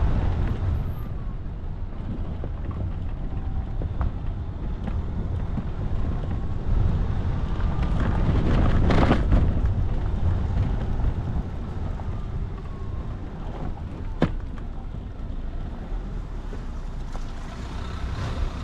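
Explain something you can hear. A vehicle's body rattles and knocks over bumps.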